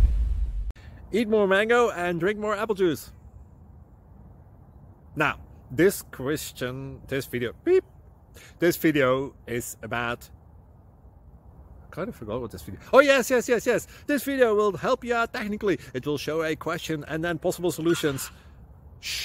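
A man talks close up, calmly and with animation.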